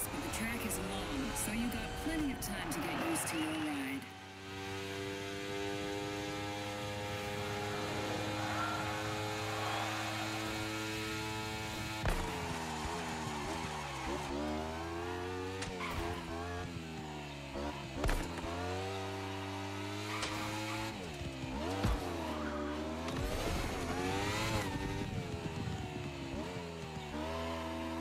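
A motorcycle engine revs hard, its pitch rising and dropping again and again as the gears shift.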